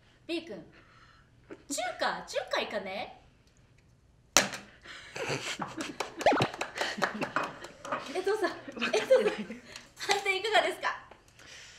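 Young women talk with animation close by.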